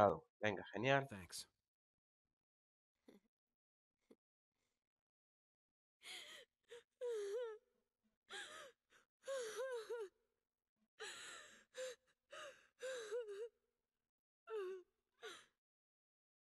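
A young woman speaks softly and tearfully, close by.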